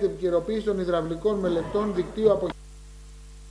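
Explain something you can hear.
A middle-aged man speaks into a microphone.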